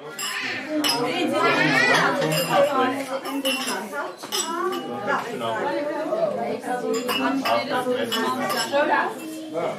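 Glasses clink together in a toast.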